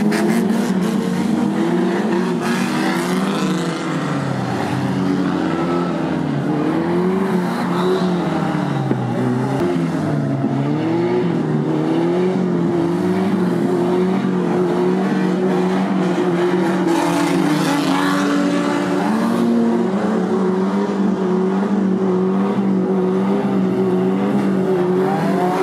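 Car engines roar and rev.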